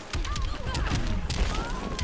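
Glass shatters.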